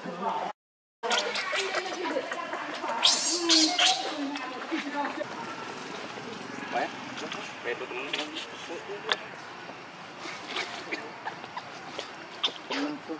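A baby monkey squeals and cries loudly.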